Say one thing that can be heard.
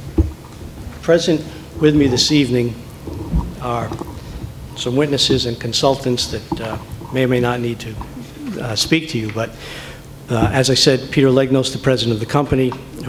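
An elderly man speaks calmly into a microphone in a room with some echo.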